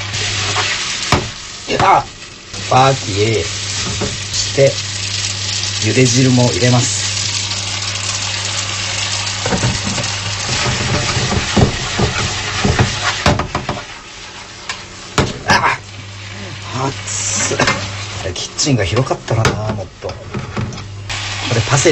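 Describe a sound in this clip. A metal fork scrapes and clinks against a frying pan while stirring noodles.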